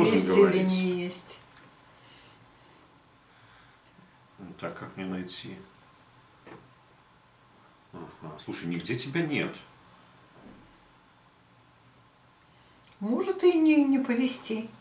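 A man talks calmly close by, in short bursts with pauses.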